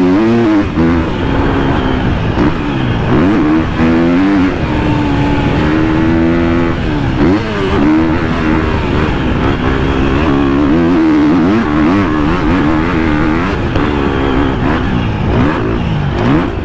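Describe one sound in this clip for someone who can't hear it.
A dirt bike engine revs hard close by, its pitch rising and falling as it shifts gears.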